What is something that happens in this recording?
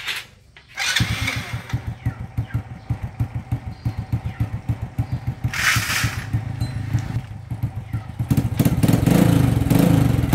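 A motorcycle engine starts and idles with a rapid sputter.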